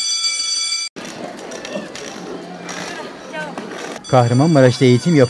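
A crowd of children chatter and call out nearby.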